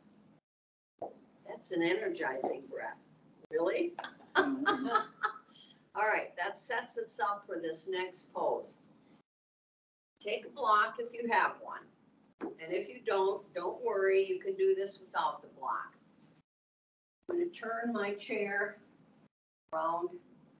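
A middle-aged woman speaks calmly and with animation through a microphone, as on an online call.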